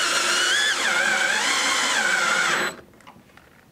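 A cordless drill whirs as it drives a screw.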